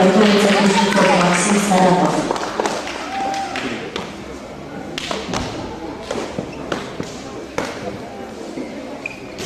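Feet thud and stomp on a hard floor in a large echoing hall.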